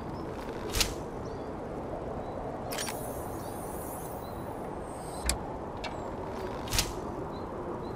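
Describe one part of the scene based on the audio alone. An arrow snaps from a crossbow with a sharp twang.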